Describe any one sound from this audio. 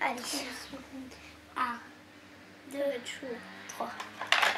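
A young girl talks quietly close by.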